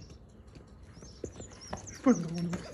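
A man knocks on a door.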